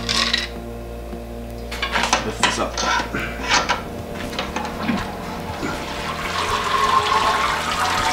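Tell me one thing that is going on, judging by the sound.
Metal parts clank against a steel pot.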